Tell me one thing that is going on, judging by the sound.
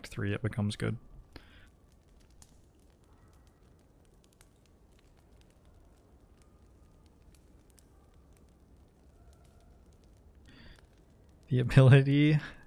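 A man speaks with animation close to a microphone.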